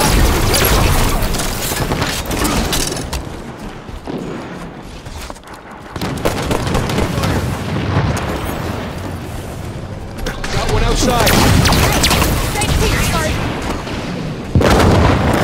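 Guns fire in quick bursts.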